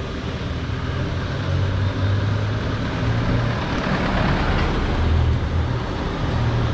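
A passenger jeep engine rumbles as it passes.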